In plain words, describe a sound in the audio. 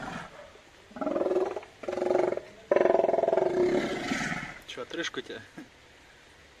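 A sea lion barks and groans loudly close by.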